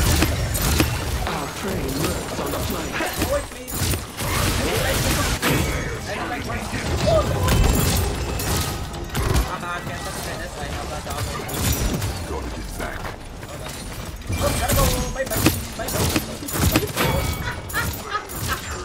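Game weapons fire in rapid bursts with sharp magical blasts.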